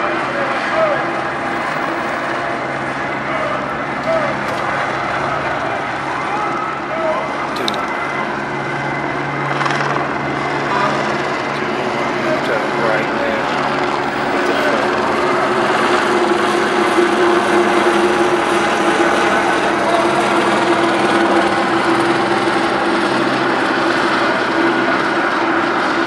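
A crowd shouts and cheers in a street outdoors.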